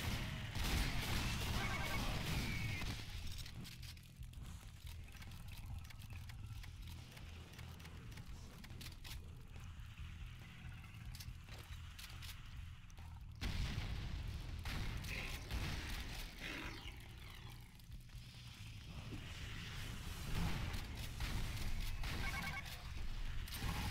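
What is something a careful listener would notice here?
Gunfire blasts rapidly from a chaingun.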